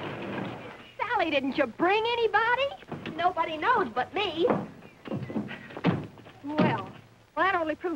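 A woman speaks excitedly, close by.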